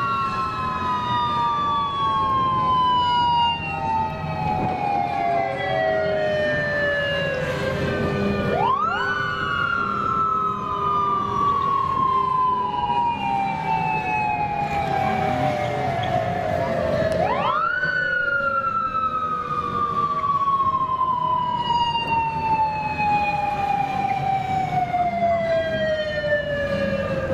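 A motorcycle siren wails, rising sharply and then slowly falling.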